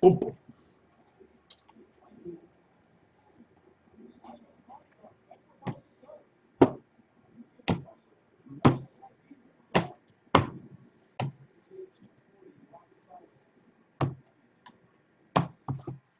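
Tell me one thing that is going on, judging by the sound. Cards tap and slap down onto a stack on a table.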